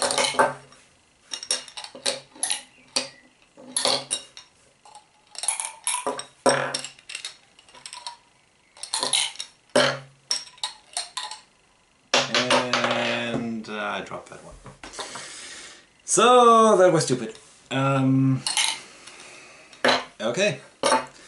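Plastic tubes tap down onto a wooden table.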